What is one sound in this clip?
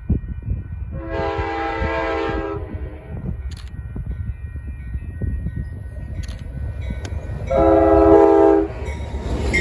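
A diesel locomotive's horn blows twice as the train approaches.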